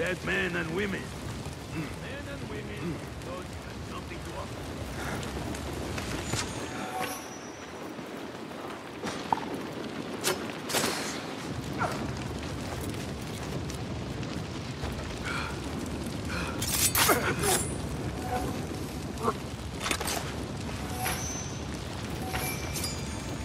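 Footsteps run over dirt and wooden planks.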